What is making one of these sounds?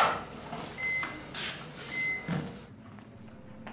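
A door swings shut with a soft thud.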